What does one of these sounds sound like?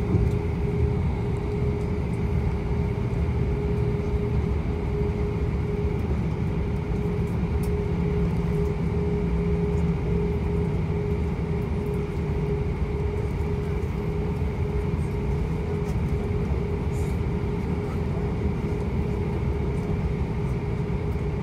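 Jet engines hum steadily, heard from inside an aircraft cabin.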